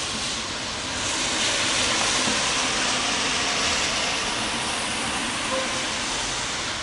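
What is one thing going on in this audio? A van drives past with tyres swishing on the wet road.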